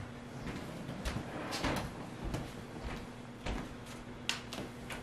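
Footsteps tread slowly across a floor.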